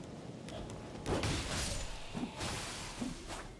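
Sword slashes and impacts clash loudly.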